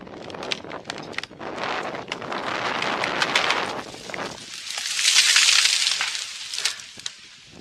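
A tree cracks and crashes to the ground with rustling branches.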